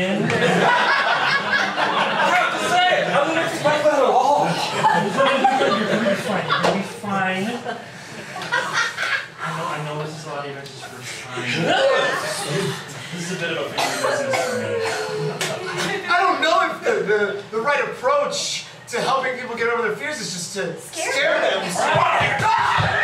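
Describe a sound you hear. Several adult men and a woman talk over each other with animation.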